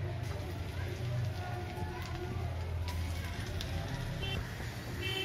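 Batter sizzles and bubbles in hot oil.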